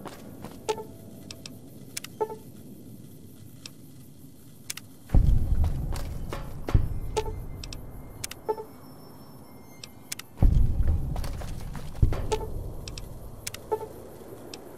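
Soft electronic blips sound as menu choices are made.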